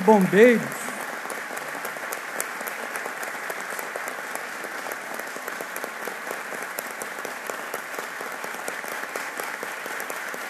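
A large crowd applauds steadily in a large echoing hall.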